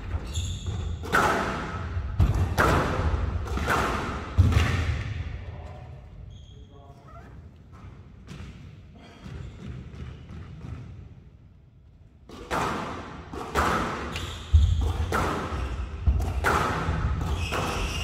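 A squash ball smacks sharply against the walls, ringing in an echoing hall.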